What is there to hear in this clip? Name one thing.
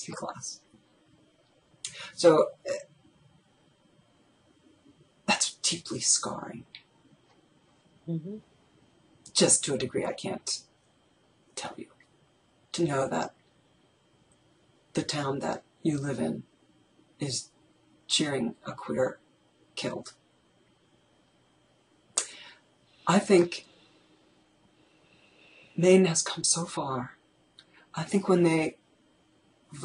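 A middle-aged woman talks calmly through a headset microphone over an online call, in short bursts with pauses.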